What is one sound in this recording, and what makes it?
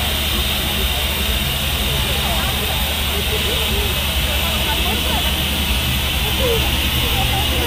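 Wind blows steadily across the microphone outdoors.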